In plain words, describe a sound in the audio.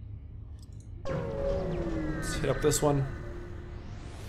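A low electronic whoosh rises as a spaceship jumps away.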